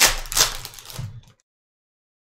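Trading cards rustle and slide as they are sorted.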